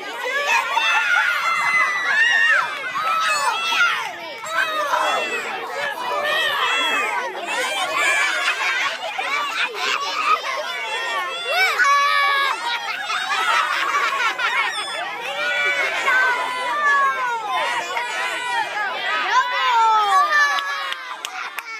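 Children shout and laugh excitedly close by, outdoors.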